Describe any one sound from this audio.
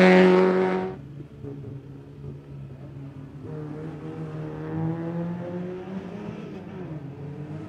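A race car engine idles and revs lightly nearby.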